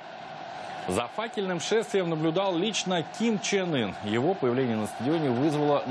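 A crowd claps their hands.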